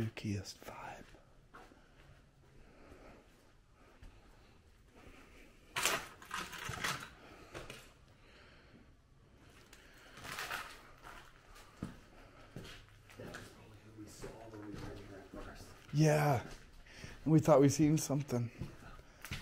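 Footsteps crunch over broken debris and litter.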